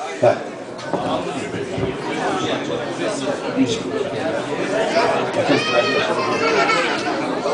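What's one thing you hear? A man chants into a microphone.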